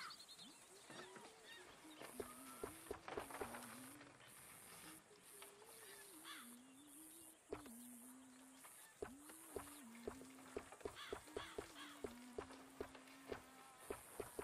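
Wooden wagon wheels creak and rattle.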